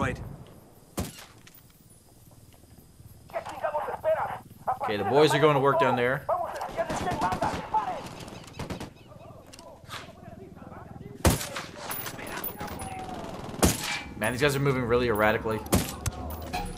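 Gunshots crack in sharp bursts.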